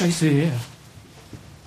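A man speaks loudly and briefly.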